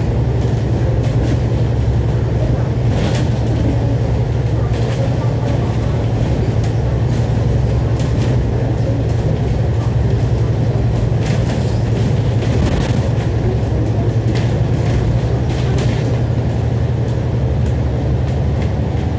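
A double-decker bus's diesel engine drones as it drives round downhill bends.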